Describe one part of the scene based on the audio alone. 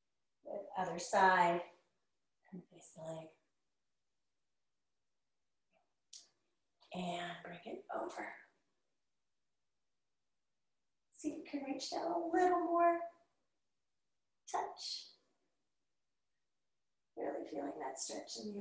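A woman speaks calmly and clearly nearby, in short phrases with pauses.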